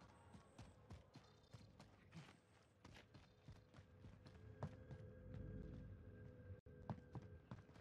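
Footsteps run quickly over hard ground and floors.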